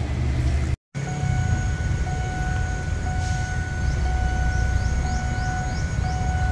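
A diesel locomotive rumbles in the distance.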